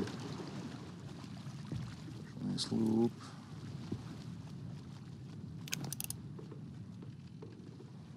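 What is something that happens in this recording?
Wind blows steadily across open water.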